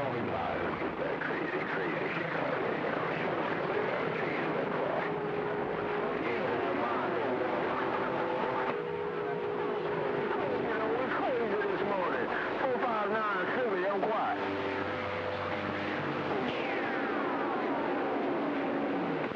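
A radio receiver hisses with static and warbling, whistling tones.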